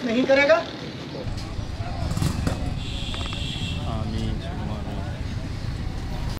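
Several men talk in the background outdoors.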